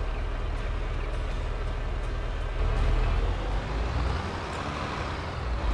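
A tractor engine idles with a low, steady rumble.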